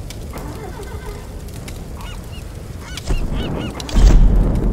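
Menu clicks sound as game options are selected.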